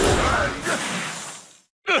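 A jingle plays as a game match ends.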